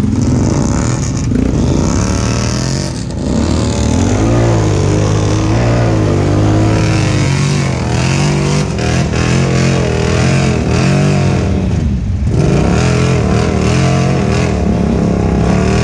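An all-terrain vehicle engine roars and revs up and down close by.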